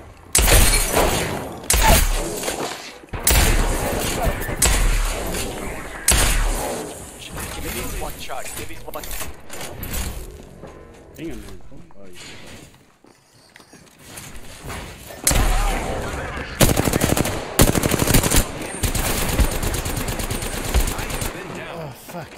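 Automatic rifle fire crackles in a video game.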